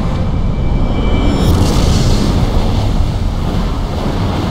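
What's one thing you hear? A huge explosion booms and rumbles deeply.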